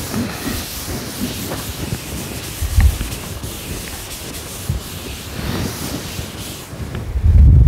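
A cloth rubs across a blackboard.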